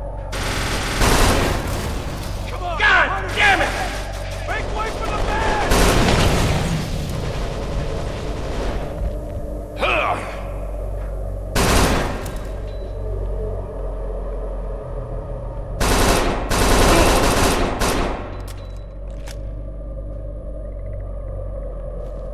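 A submachine gun fires in loud rapid bursts.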